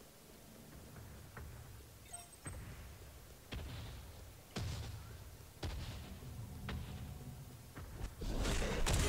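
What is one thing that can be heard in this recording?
Heavy footsteps thud as a creature runs.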